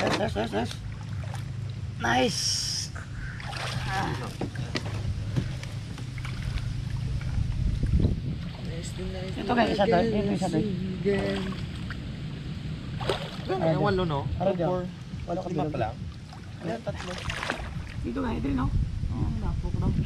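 Water splashes and sloshes as people wade through it.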